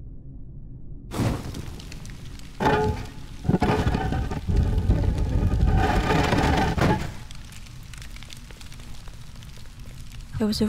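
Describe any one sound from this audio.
Fires crackle softly in braziers.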